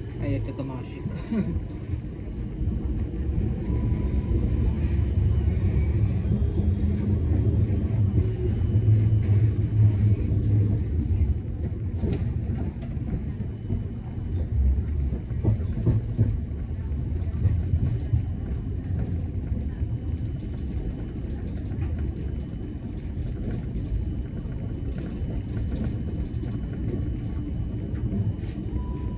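A tram rumbles and rattles steadily along its tracks.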